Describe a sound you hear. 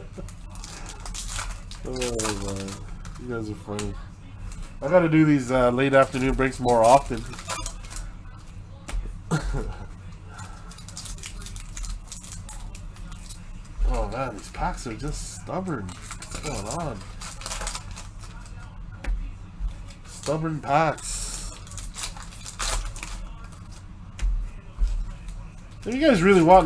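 Foil wrapping crinkles and tears as hands open a pack.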